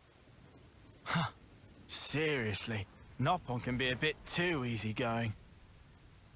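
A man speaks with a weary tone, close by.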